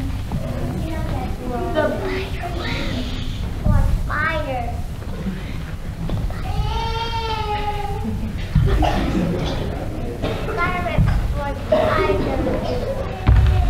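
Young children speak and call out through a microphone in a large hall.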